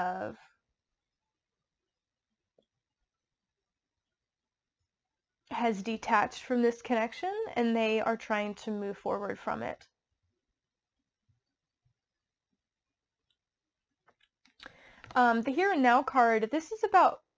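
A woman speaks calmly and close by, in bursts with pauses.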